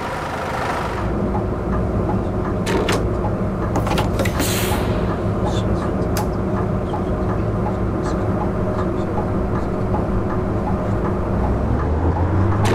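A diesel city bus engine idles.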